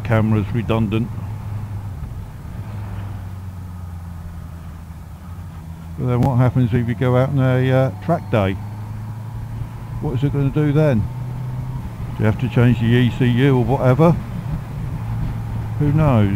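A man talks into a microphone inside a helmet.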